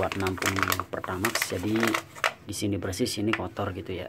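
Plastic wrapping crinkles in someone's hands.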